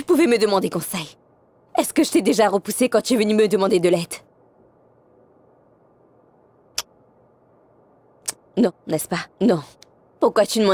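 A young woman speaks earnestly and with animation, close by.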